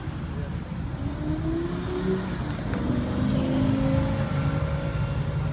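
A Lamborghini Gallardo V10 accelerates past.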